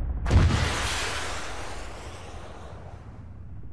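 A missile launches with a loud roaring whoosh.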